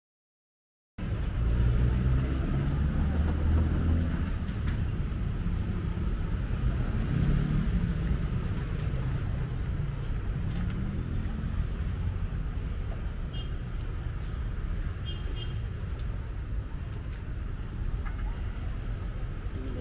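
Traffic rumbles steadily nearby.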